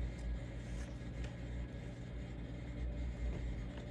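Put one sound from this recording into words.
A card is laid down on a table with a light tap.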